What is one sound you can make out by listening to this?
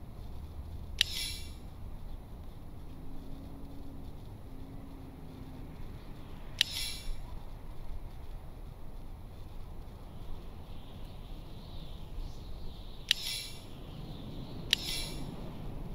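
A short bright chime rings several times.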